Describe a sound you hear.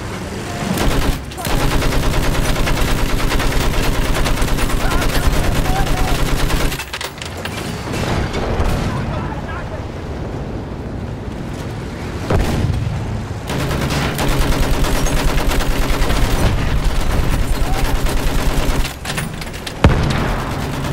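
Loud explosions boom close by.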